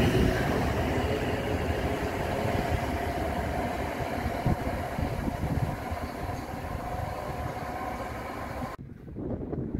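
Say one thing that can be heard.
A train's engine hums as it pulls away into the distance and fades.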